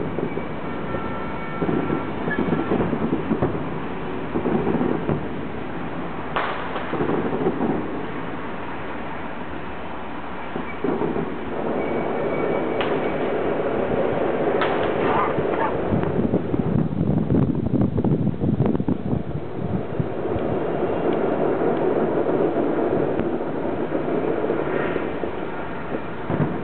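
Fireworks boom and crackle in the distance.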